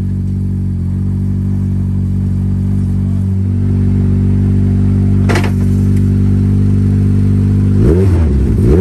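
A rally car engine idles with a deep, steady rumble.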